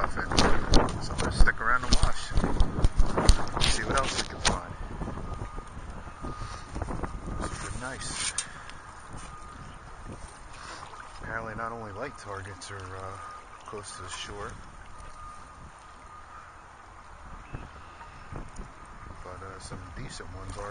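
Water splashes and sloshes around wading feet.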